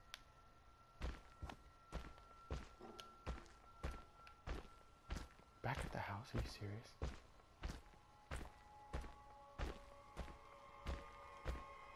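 Heavy footsteps thud steadily across soft ground.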